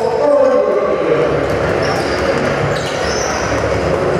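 A man speaks into a microphone, heard over loudspeakers in a large echoing hall.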